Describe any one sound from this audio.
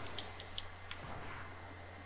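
A pickaxe swishes through the air in a game.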